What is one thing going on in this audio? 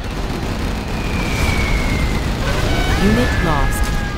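Laser weapons fire in quick zaps.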